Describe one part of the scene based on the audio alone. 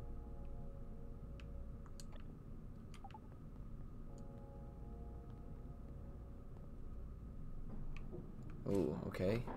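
Video game blips and clicks sound now and then.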